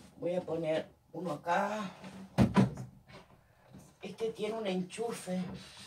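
Objects knock against a wooden shelf.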